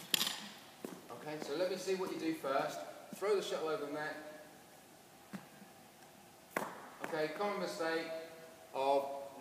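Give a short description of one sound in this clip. A man talks calmly in a large echoing hall.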